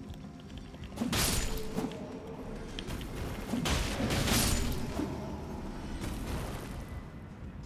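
Weapons clash and strike in a sudden burst of fighting.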